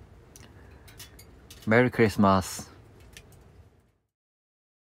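A wood stove fire crackles softly.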